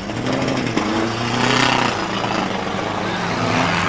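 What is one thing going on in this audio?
Tyres skid and screech on a wet track.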